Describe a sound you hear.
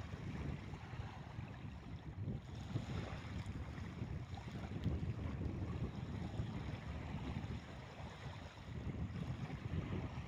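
A fishing reel clicks as a line is wound in.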